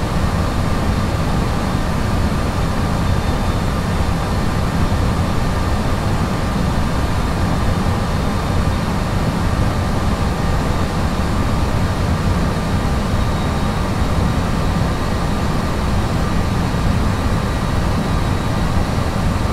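Jet engines roar steadily with a loud, deep rumble.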